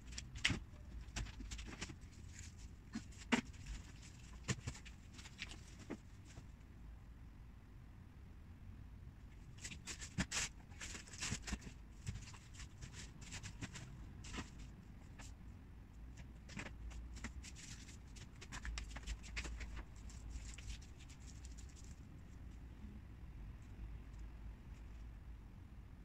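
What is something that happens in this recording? Small objects knock and clatter as they are handled.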